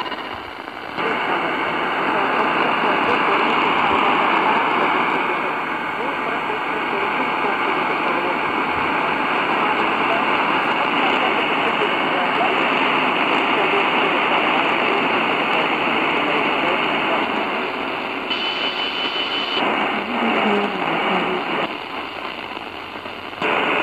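A radio hisses with loud static from its speaker.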